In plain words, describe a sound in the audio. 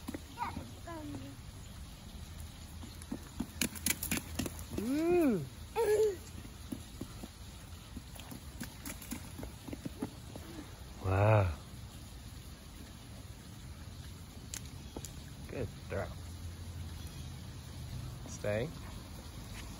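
A toddler squeals and babbles with excitement close by.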